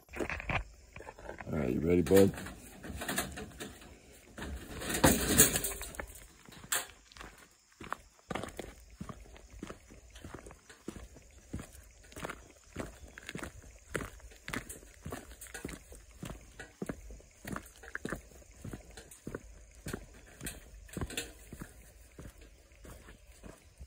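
A wire cage rattles and clinks.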